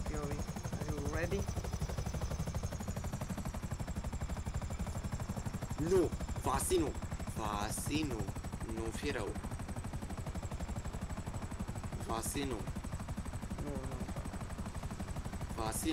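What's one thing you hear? A helicopter's rotor thumps steadily and close.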